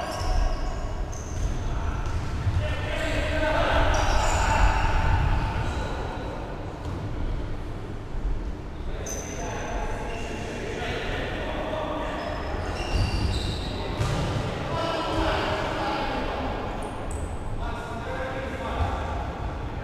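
Sneakers squeak on a hard floor.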